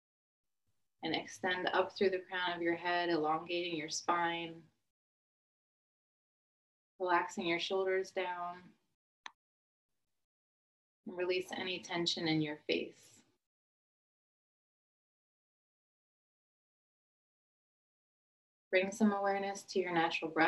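A middle-aged woman speaks calmly and softly, in slow phrases with long pauses, heard through a microphone as on an online call.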